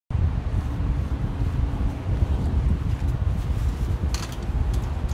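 Footsteps shuffle across a floor close by.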